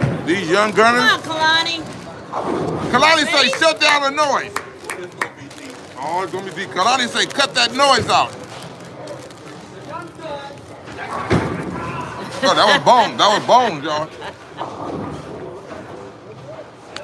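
Young men shout and cheer excitedly nearby.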